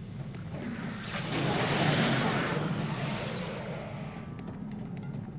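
A magical spell whooshes loudly, then fades.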